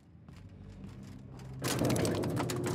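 A lever clunks as it is pulled.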